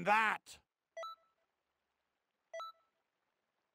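A menu chime beeps a few times.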